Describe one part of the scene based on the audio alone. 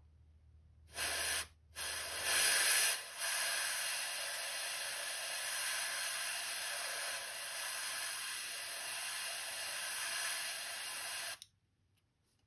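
An airbrush hisses steadily, with short bursts at first.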